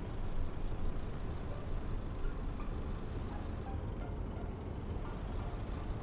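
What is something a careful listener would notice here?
A truck engine rumbles steadily as it drives slowly.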